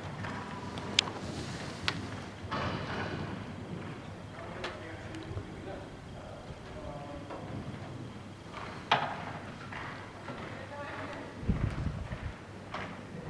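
Horse hooves thud softly on sand in a large echoing hall.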